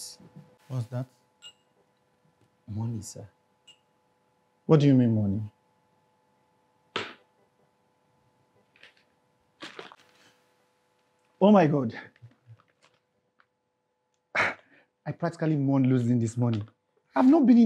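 Another adult man replies nearby.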